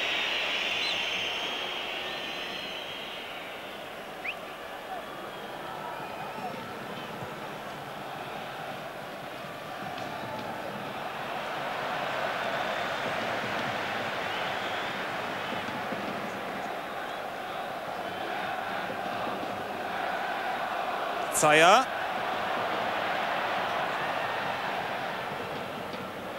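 A large stadium crowd murmurs and roars steadily outdoors.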